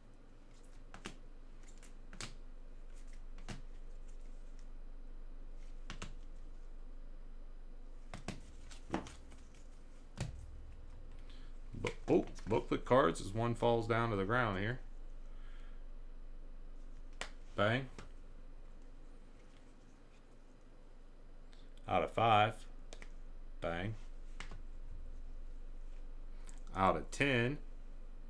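Plastic card cases click and tap as they are handled.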